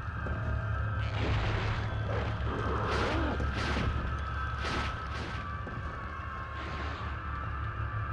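Pistol shots ring out in bursts.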